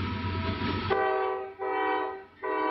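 A train horn blows in loud blasts.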